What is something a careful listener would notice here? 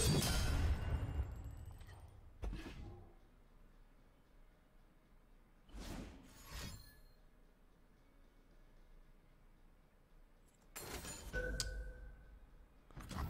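A video game plays whooshing and chiming sound effects.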